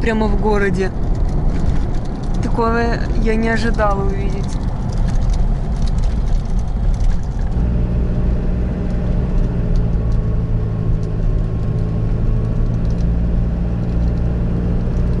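Tyres rumble on an asphalt road.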